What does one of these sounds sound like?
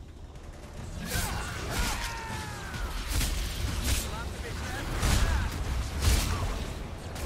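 Explosions boom and crack in a fight.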